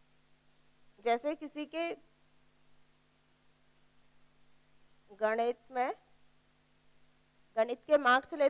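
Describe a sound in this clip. A woman speaks in short phrases through a headset microphone.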